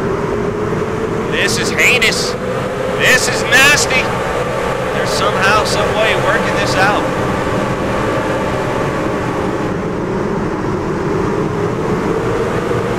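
Many race car engines roar steadily around a track.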